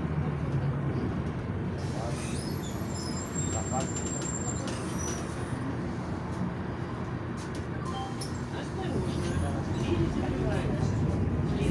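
Cars pass by on the road outside.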